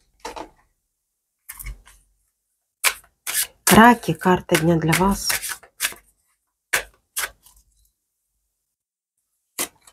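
Cards slap and riffle as a deck is shuffled.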